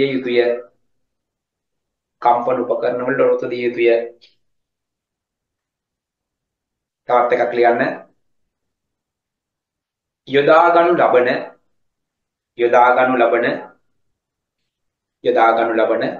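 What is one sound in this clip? A man speaks clearly and steadily into a close microphone, in short phrases with pauses.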